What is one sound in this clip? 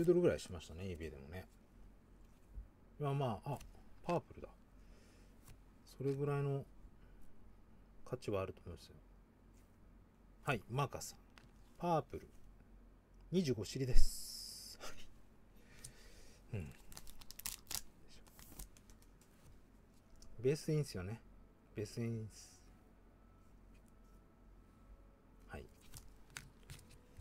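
Trading cards rustle and slide against each other in gloved hands.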